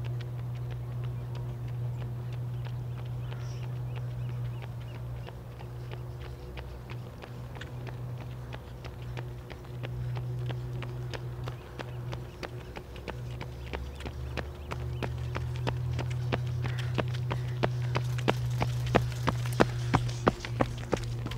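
Running footsteps patter on pavement, growing louder as they come close.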